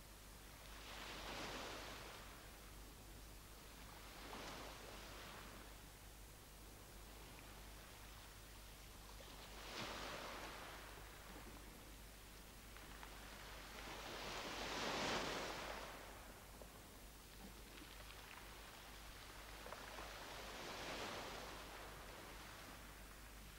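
Waves wash against rocks below in slow surges.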